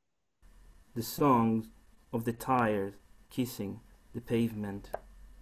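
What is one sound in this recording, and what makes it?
A middle-aged man speaks calmly and haltingly over an online call.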